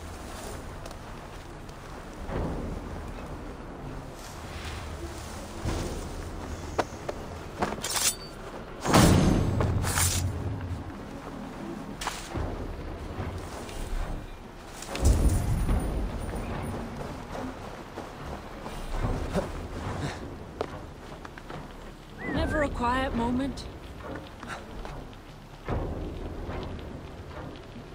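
Footsteps rustle through tall grass.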